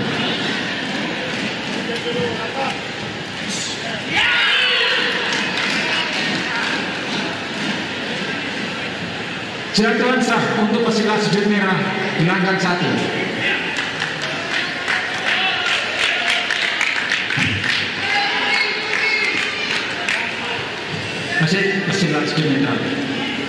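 A crowd in a large echoing hall cheers and shouts.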